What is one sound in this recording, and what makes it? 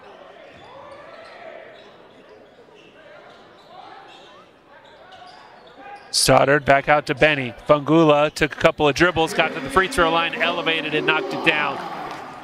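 A crowd of spectators murmurs in a large echoing gym.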